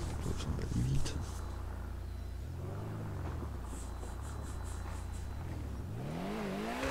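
A racing car engine idles with a low, steady rumble.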